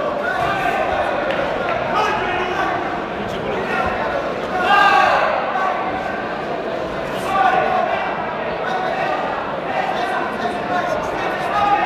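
Gloved punches thud against a fighter's body.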